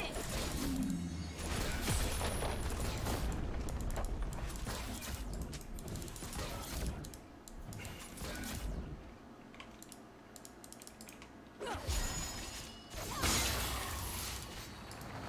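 Game fight sounds clash and zap in quick bursts.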